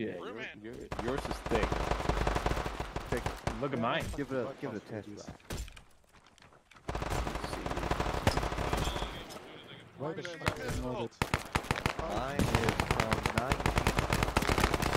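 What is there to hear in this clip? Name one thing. Rifles fire in rapid bursts nearby.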